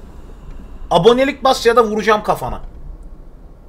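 A young man speaks briefly and animatedly into a close microphone.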